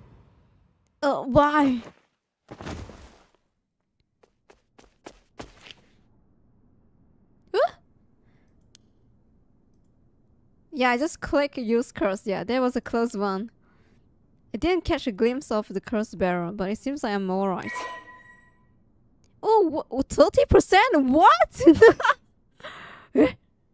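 A young woman talks with animation, close to a microphone.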